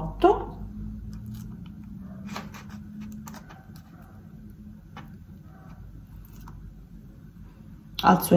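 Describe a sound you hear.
Hands rustle and crinkle a plastic wrapper.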